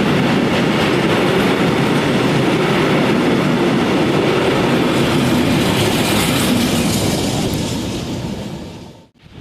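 A freight train's wagons rumble and clatter loudly past on the rails, then fade away.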